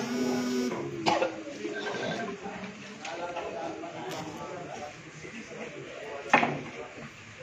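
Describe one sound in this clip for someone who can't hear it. Pool balls click sharply against each other.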